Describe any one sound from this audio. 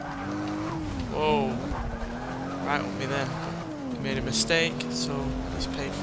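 Tyres squeal loudly as a car slides through a bend.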